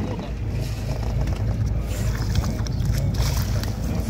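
Water splashes as a fish thrashes at the surface.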